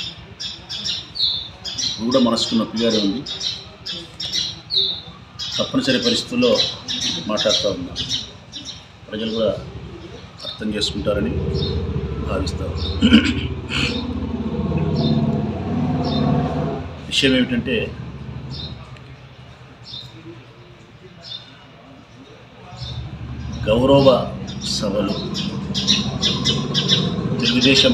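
A middle-aged man speaks calmly and steadily into a close microphone.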